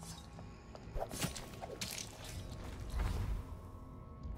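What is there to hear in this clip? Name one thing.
A blade stabs into flesh with a wet thud.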